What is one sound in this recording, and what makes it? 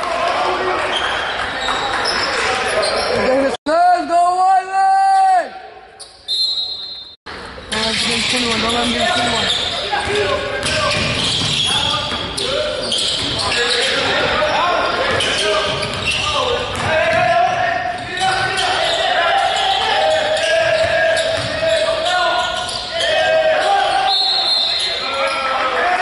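A crowd of spectators chatters and cheers, echoing in a large hall.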